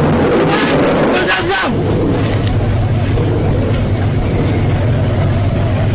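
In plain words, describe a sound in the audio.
A crowd of men shouts and cheers.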